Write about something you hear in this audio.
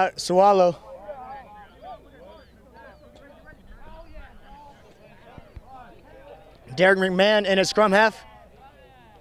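Young men shout to each other outdoors on an open field.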